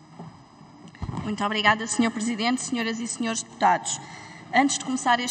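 A man speaks firmly through a microphone in a large echoing hall.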